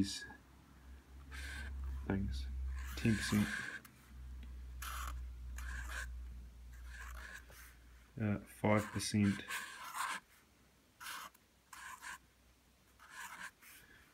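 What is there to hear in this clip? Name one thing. A felt marker squeaks and scratches across paper.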